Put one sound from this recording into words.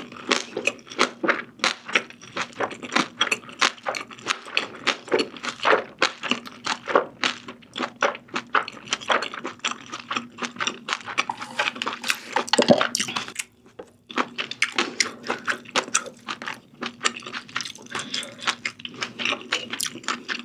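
A young woman chews and slurps food loudly, close to a microphone.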